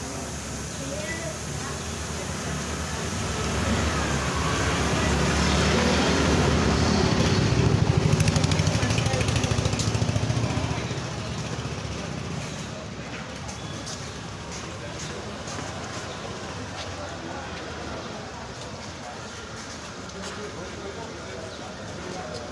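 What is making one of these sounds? A trowel scrapes and smooths wet cement.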